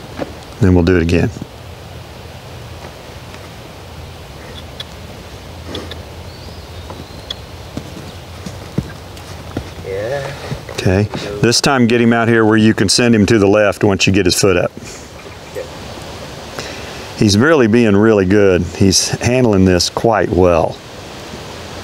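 A young man talks calmly and close by.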